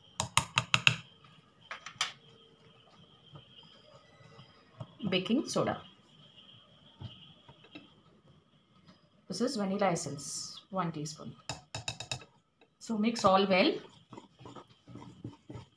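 A wire whisk clicks rapidly against a glass bowl.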